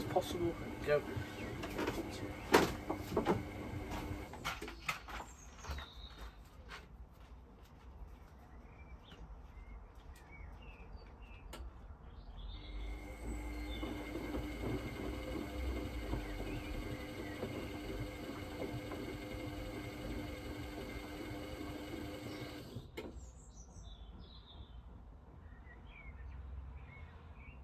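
A washing machine drum turns with a low steady hum.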